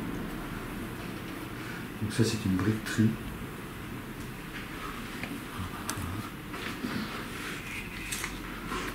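Large sheets of photographic paper rustle and slide as they are handled.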